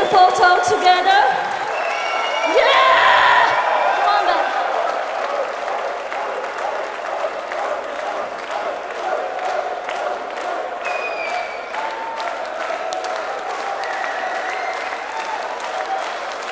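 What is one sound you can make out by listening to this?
A band plays loud rock music.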